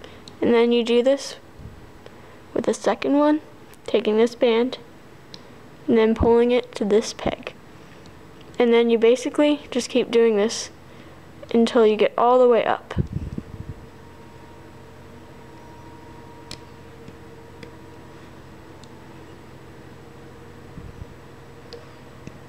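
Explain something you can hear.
A small plastic hook clicks and scrapes against rubber bands.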